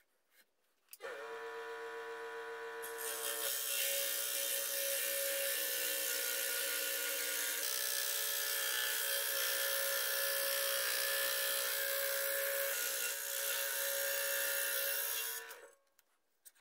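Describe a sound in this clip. A scroll saw buzzes steadily as it cuts through wood.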